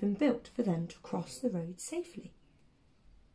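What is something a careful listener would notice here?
A young woman speaks calmly and clearly close to the microphone.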